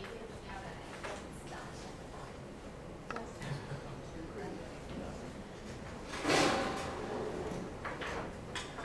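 Several men and women talk quietly nearby in a room.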